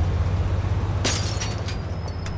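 A car door opens with a click.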